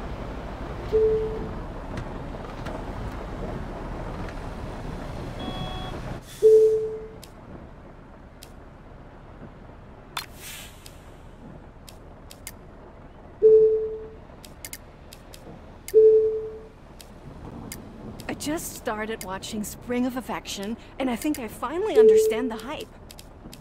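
Short soft menu chimes sound now and then.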